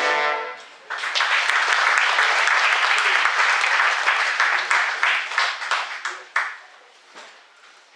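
An audience applauds loudly and then the clapping dies away.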